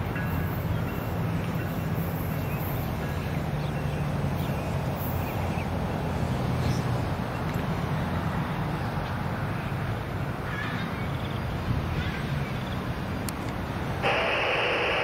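A diesel locomotive rumbles in the distance as a train pulls away.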